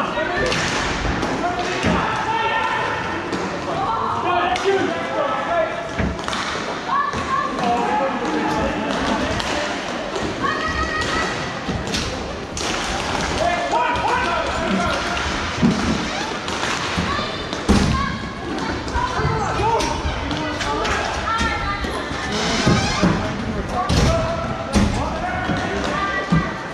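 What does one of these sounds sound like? Skates roll and scrape on a hard floor.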